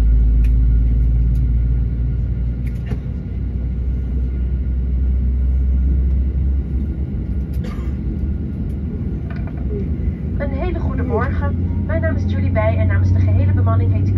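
A low engine rumble drones steadily while rolling slowly.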